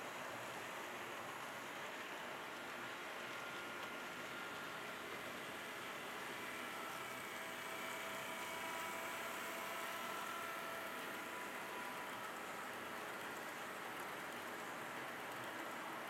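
A model train rumbles and clicks along the track, growing louder as it passes close by.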